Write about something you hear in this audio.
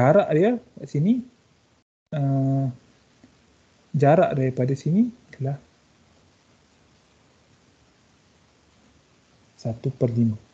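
A young man speaks calmly through an online call, in short bursts with pauses.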